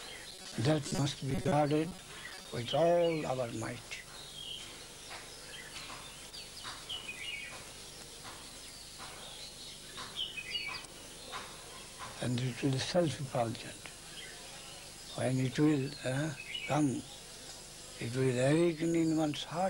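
An elderly man talks calmly, with long pauses, close by.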